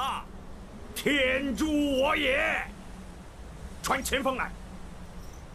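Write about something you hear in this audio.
An elderly man speaks in a loud, commanding voice.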